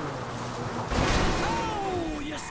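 A car bangs hard against a kerb.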